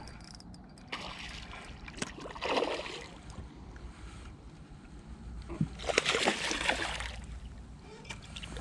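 A fish splashes and thrashes at the water's surface close by.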